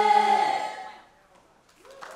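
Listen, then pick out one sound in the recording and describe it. A large group sings together on stage.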